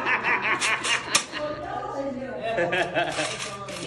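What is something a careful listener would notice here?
A man laughs heartily nearby.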